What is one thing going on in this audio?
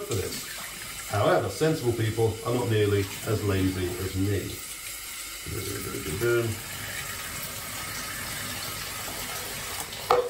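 Powder rustles and scoops in a plastic tub.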